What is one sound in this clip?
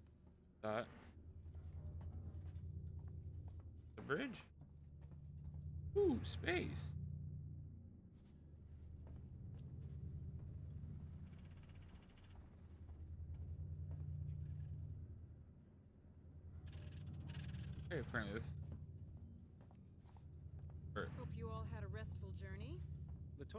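A low mechanical hum throbs steadily, swelling and fading in slow waves.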